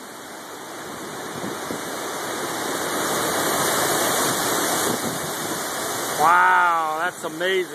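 Tree leaves rustle and thrash in the wind.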